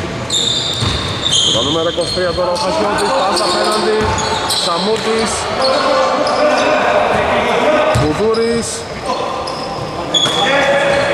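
Men shout and call out to each other across the court.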